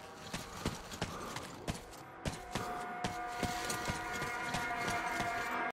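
Footsteps crunch steadily through dry grass.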